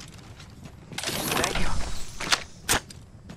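Metal gear clanks and rattles as items are picked up.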